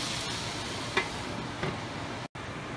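A glass lid clinks onto a metal pan.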